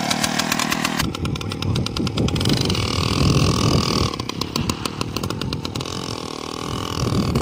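A small motor engine drones a little further off.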